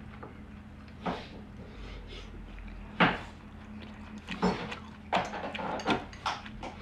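An elderly man slurps and chews food noisily.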